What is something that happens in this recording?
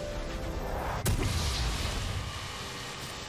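A magic blast bursts with a deep boom.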